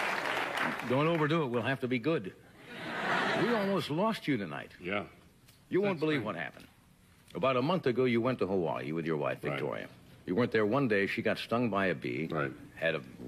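An elderly man talks with animation into a microphone.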